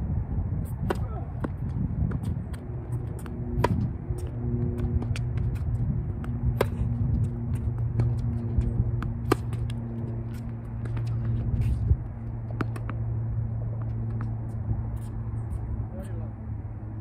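Paddles pop against a plastic ball in a rally, with sharp hollow knocks.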